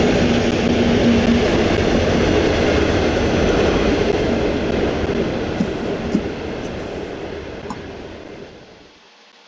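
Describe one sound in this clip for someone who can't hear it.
A train rumbles past on the rails and fades into the distance.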